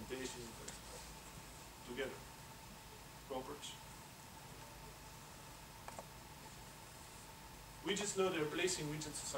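A man speaks into a microphone in a large hall, pausing between phrases.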